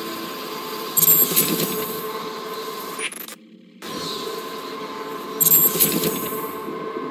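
A bright electronic chime rings out twice.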